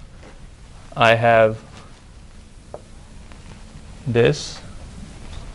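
A man speaks briefly in short bursts.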